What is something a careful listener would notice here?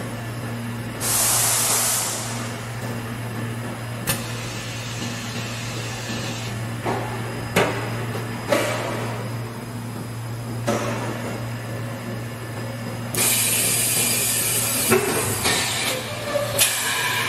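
Compressed air hisses in loud bursts.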